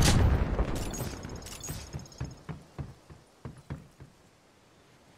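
Footsteps thud on a metal deck.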